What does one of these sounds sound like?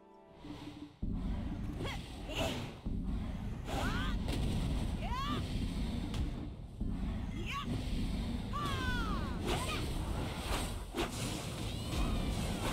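Magic blasts and weapon strikes crash in a fight.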